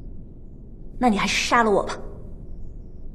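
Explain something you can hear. A man speaks calmly in a low voice nearby.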